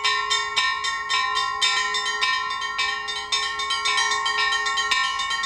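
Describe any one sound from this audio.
Bells ring rapidly in a lively, clanging peal.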